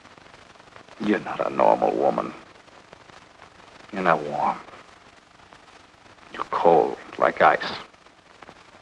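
A man speaks calmly and quietly up close.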